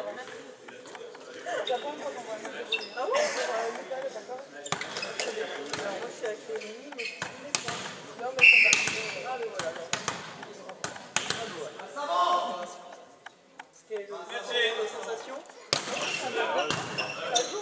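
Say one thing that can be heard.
Young men's voices shout and call out across a large echoing hall.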